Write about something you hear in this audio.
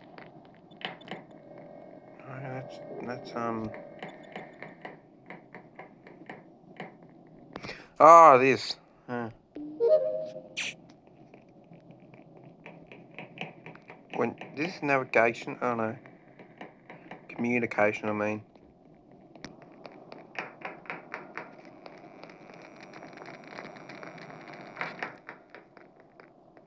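Quick game footsteps patter steadily.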